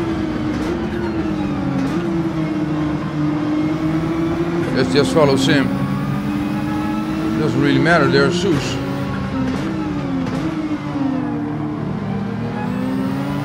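A racing car engine roars steadily, its pitch rising and falling through gear changes.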